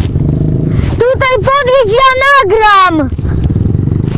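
Another dirt bike engine revs up and down, loud and high-pitched, then drops away.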